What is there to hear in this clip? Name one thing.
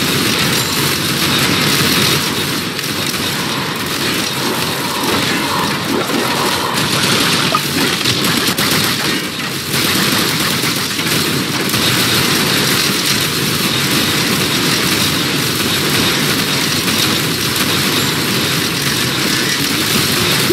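Electric zaps and laser shots crackle rapidly and without pause.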